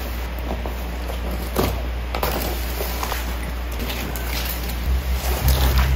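Cardboard scrapes and rustles as a box is opened.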